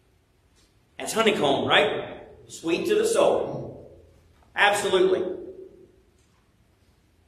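A man speaks a few short phrases into a microphone, his voice echoing in a reverberant room.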